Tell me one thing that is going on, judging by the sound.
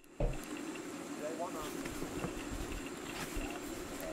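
A cardboard box lid is flipped open.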